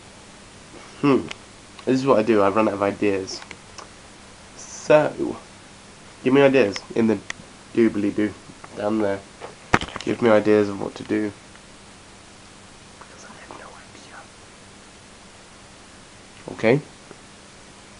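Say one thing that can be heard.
A young man talks casually close to a microphone, in short bursts with pauses.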